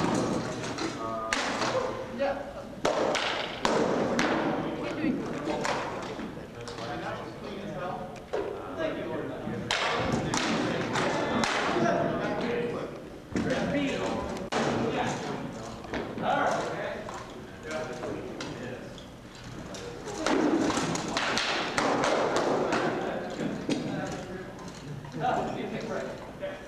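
Swords clash and knock against shields in sharp, irregular blows, echoing in a large hall.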